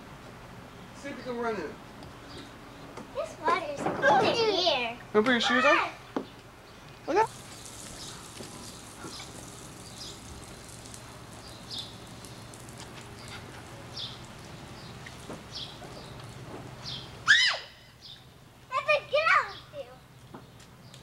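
A young child talks in excited bursts close by.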